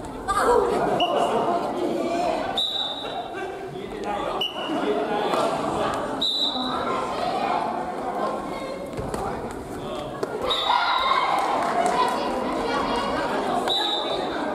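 Shoes squeak sharply on a wooden floor.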